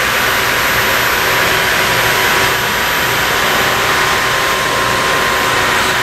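A stone cutting machine hums and hisses steadily.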